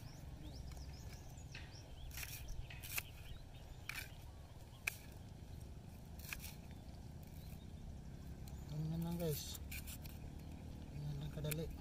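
A knife taps and slices through a shallot on a board.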